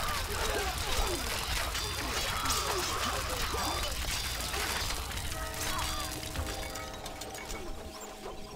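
Weapons clash in a noisy battle.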